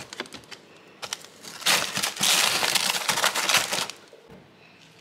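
A plastic ice tray cracks and crackles as it is twisted.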